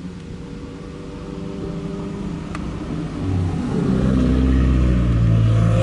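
A truck engine rumbles as it drives past.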